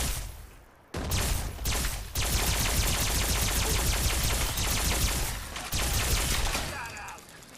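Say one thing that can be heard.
A loud, rapid burst of weapon fire and explosions roars.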